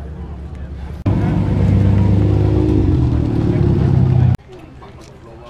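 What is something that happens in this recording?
A car drives past with a loud, deep engine rumble.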